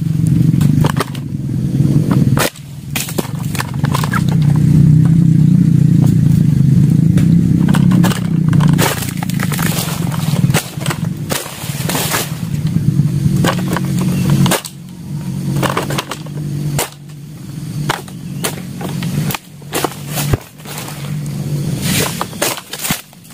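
A pole sickle scrapes and chops at palm fronds overhead.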